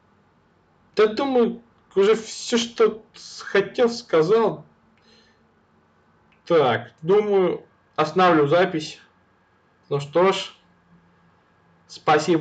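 A young man speaks casually into a close microphone.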